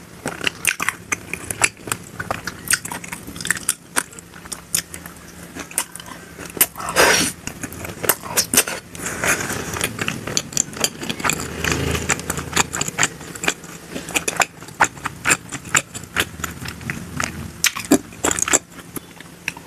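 A young woman chews and smacks wet, sticky food close to a microphone.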